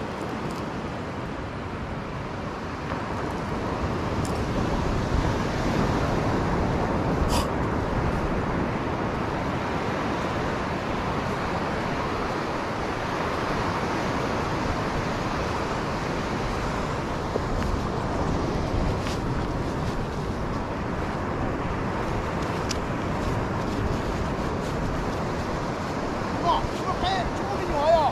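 Ocean waves wash steadily onto a beach in the distance.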